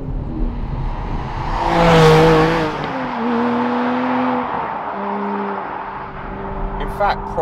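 A sports car roars past loudly outdoors and fades away.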